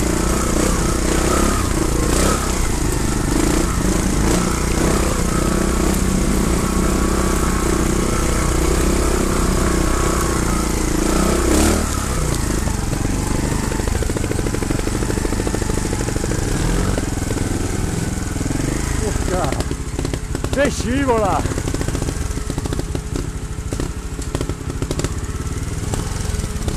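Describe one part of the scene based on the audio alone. A motorbike engine putters and revs close by.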